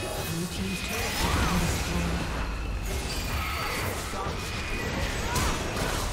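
Fantasy spell effects crackle and whoosh in a video game battle.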